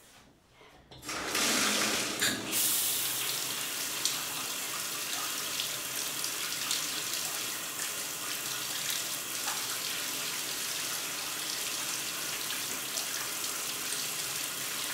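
Water gushes steadily from a tap into a bathtub.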